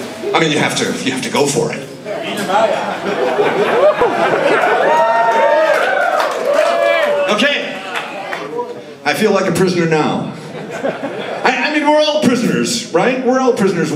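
A man sings and speaks loudly through a microphone.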